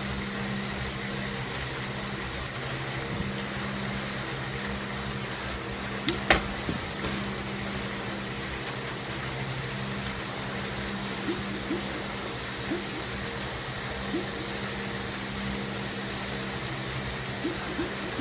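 A stationary bike trainer whirs steadily under pedalling.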